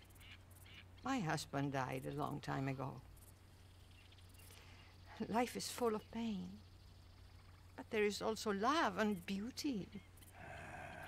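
An elderly woman speaks gently and calmly close by.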